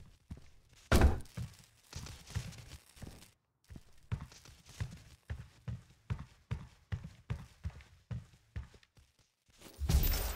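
Heavy footsteps thud steadily on a metal floor.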